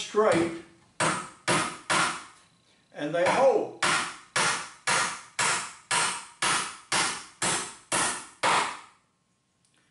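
A wooden stand knocks rhythmically against a hard floor as it is rocked.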